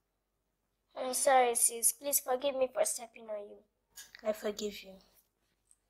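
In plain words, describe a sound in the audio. A young girl speaks sharply, close by.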